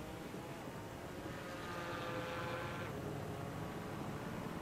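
A racing car engine roars past close by and fades.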